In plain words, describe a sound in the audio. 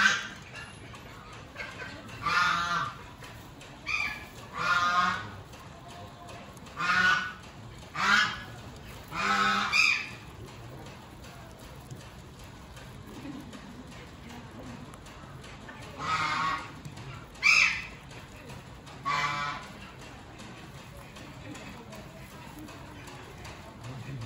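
Hay rustles as guinea pigs root through it.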